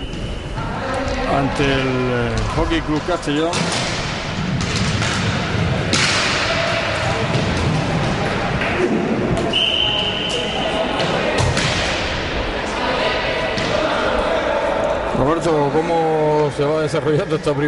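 Roller skates roll and scrape across a wooden floor.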